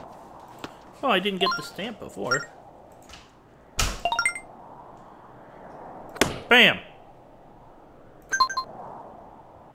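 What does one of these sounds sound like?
Short chiming tones sound as menu choices are made.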